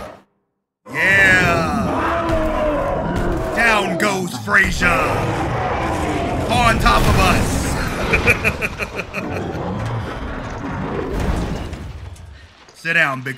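A large creature roars loudly.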